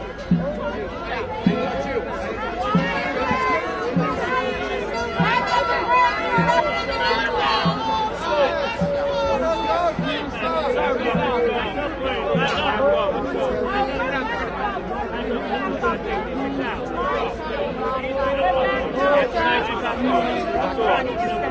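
A large crowd talks and shouts loudly outdoors.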